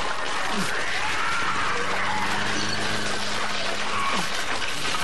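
A man groans loudly nearby.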